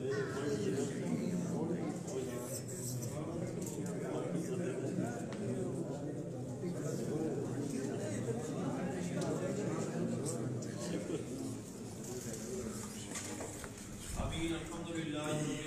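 A crowd of men murmurs in the background.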